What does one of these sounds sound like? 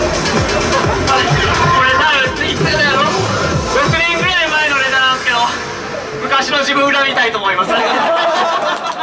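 A young man speaks with animation through a microphone over loudspeakers.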